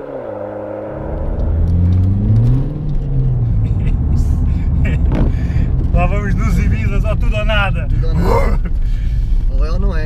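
A car engine roars and revs up close.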